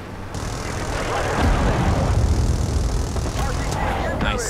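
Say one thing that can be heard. Explosions boom on the ground below.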